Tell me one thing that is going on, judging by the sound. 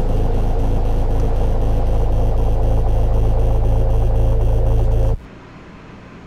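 A subway train roars loudly into an echoing station.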